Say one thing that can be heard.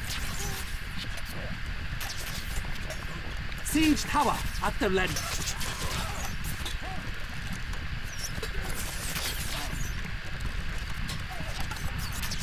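Armoured soldiers march with clanking footsteps.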